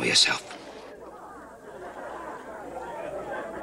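An elderly man speaks hoarsely close by.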